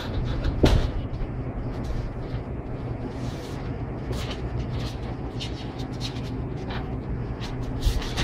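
Pages of a booklet flip and rustle.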